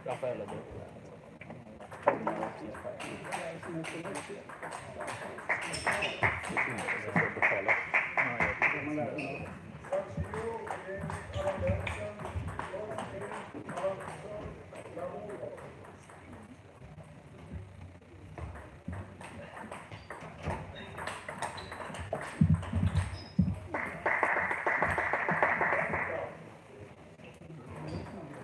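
A ping-pong ball clicks back and forth between paddles and the table.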